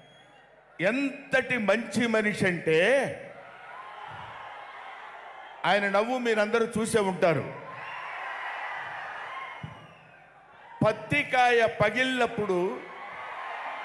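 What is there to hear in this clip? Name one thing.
A middle-aged man speaks animatedly into a microphone over loudspeakers.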